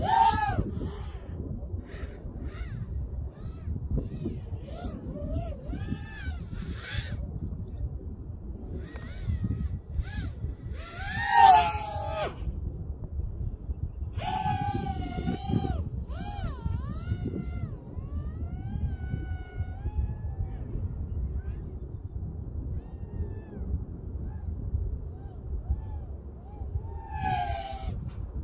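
Wind rushes past the flying drone with a low, rough rumble.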